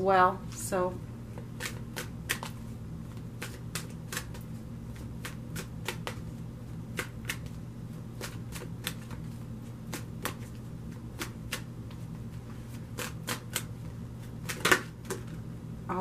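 Cards are shuffled with quick, soft flicks.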